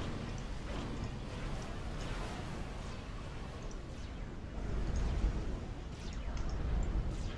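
Explosions and gunfire rumble in a distant battle.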